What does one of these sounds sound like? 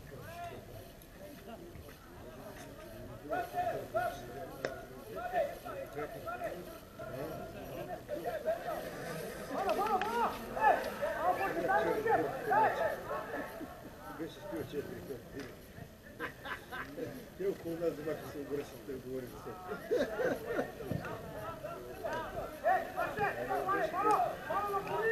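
Men close by talk and call out outdoors.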